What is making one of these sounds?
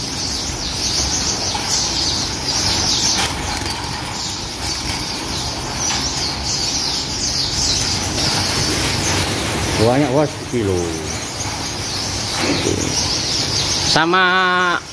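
Many small birds chirp and twitter busily all around.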